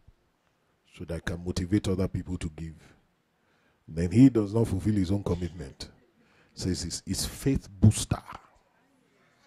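A man preaches with animation into a microphone, heard through loudspeakers in a large hall.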